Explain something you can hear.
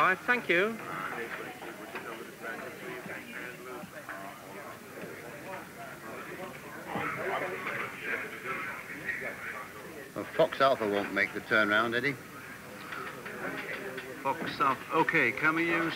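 Men talk on telephones in a busy room.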